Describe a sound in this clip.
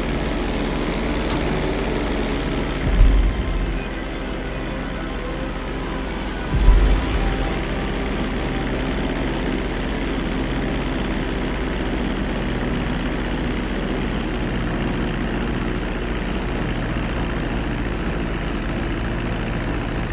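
A small propeller plane's engine drones steadily.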